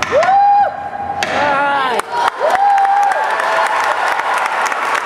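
Dancers' feet tap and stamp on a wooden stage.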